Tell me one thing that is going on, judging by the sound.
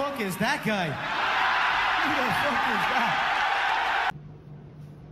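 A crowd laughs.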